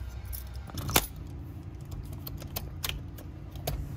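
A lockbox clicks and rattles against a door.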